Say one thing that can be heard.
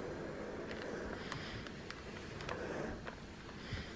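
A steam iron hisses softly as it presses fabric.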